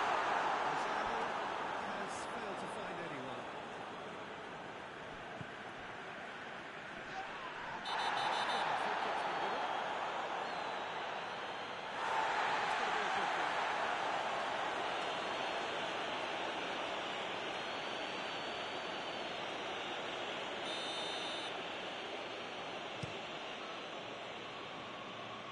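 A large stadium crowd cheers and roars steadily, swelling loudly at moments.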